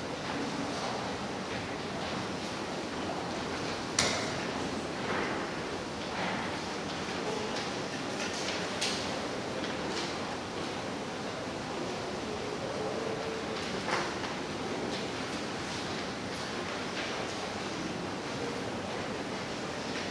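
An audience murmurs softly in a large hall.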